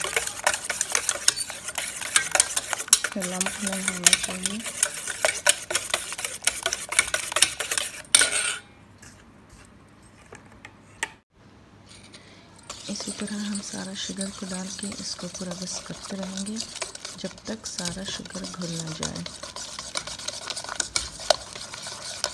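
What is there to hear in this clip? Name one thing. A wire whisk clicks and scrapes rapidly against a metal bowl.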